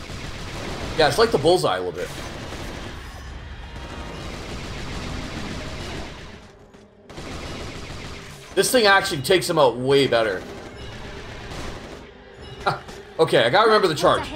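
A man talks with animation close to a headset microphone.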